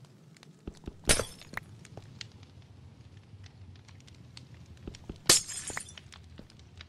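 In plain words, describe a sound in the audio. Glass shatters with a sharp crash.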